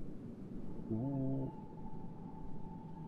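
A sword rings with a soft, steady hum.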